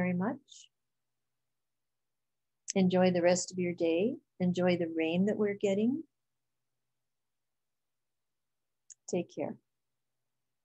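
An elderly woman speaks calmly and warmly, heard close through a computer microphone.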